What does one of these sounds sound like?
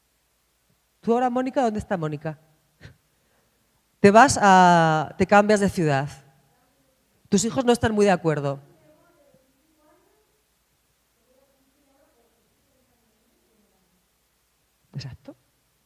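A woman speaks with animation into a microphone, in bursts with pauses.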